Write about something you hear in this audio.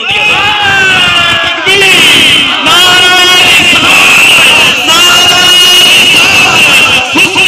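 A man chants loudly and passionately through a microphone and loudspeakers, echoing outdoors.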